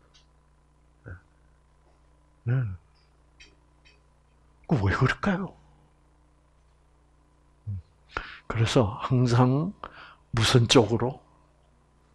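An elderly man speaks calmly into a microphone, in short bursts with pauses.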